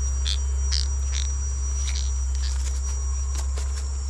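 A fishing net rustles as it is handled.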